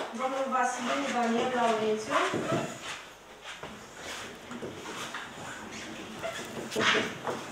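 A woman reads out calmly into a microphone.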